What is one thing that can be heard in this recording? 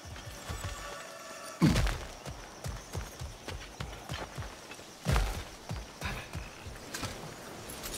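Footsteps crunch on gravel and rock.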